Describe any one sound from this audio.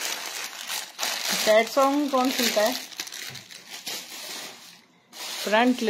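Heavy fabric rustles as it is unfolded and spread out.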